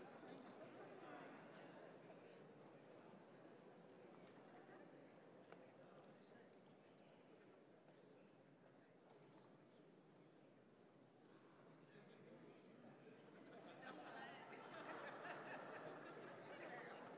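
Men and women chat and murmur in a large echoing hall.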